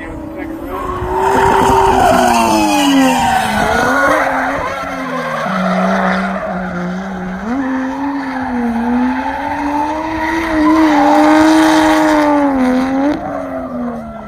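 Tyres screech on asphalt.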